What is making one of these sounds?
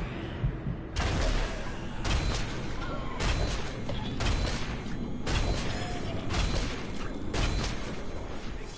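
Arrows strike an enemy with sharp thuds.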